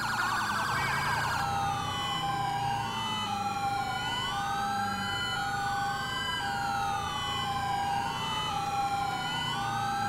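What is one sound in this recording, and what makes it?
A police siren wails, rising and falling in quick sweeps.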